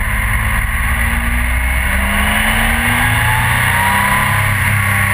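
A motorcycle engine revs up, rising in pitch.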